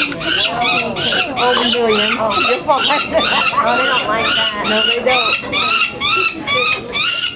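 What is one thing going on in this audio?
A young bird screeches loudly and repeatedly close by.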